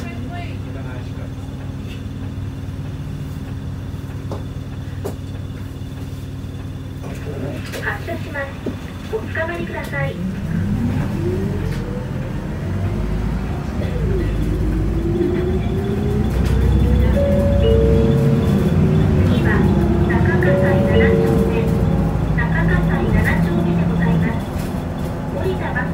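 A vehicle's engine rumbles low and steady from inside, then whines rising in pitch as it pulls away.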